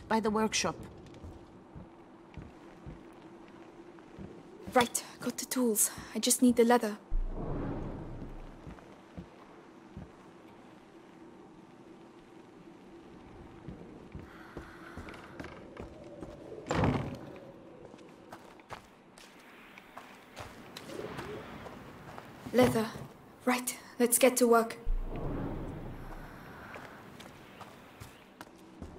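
Footsteps tread on creaking wooden floorboards.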